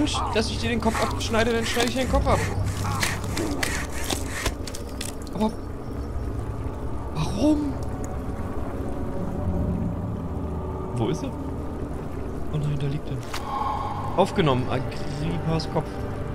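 A middle-aged man talks with animation, close to a microphone.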